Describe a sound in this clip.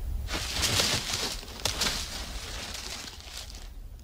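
Two lizards scuffle and scrape across dry dirt.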